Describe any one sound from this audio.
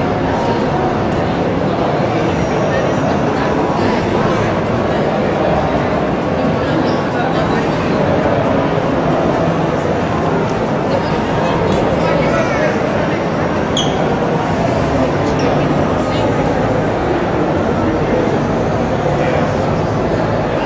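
A large crowd murmurs and chatters steadily in a big echoing hall.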